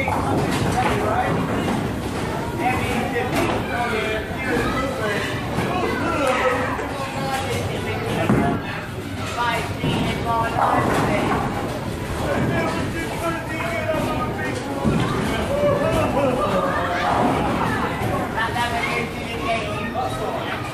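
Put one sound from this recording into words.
Men talk and laugh loudly nearby in a large echoing hall.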